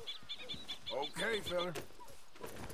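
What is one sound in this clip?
A horse whinnies nearby.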